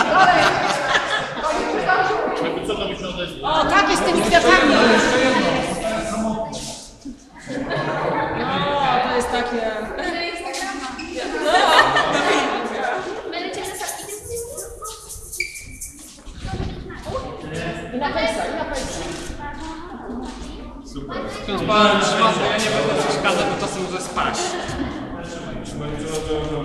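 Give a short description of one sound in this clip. A crowd of adults and children chatter in a large echoing church.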